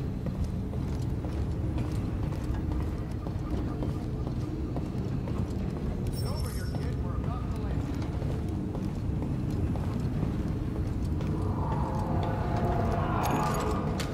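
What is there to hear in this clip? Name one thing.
Footsteps clang on a metal grating floor.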